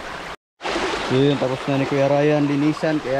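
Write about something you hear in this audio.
A young man talks close by, calmly.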